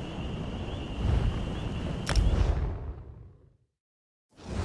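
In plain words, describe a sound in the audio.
A deep magical whoosh swells and cuts to silence.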